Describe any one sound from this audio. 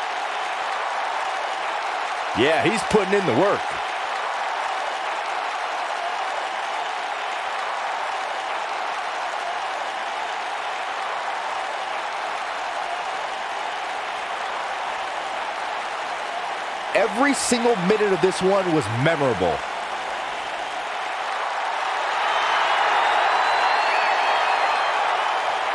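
A large crowd roars and cheers steadily.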